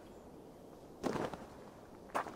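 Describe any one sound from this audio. A body lands with a heavy thud.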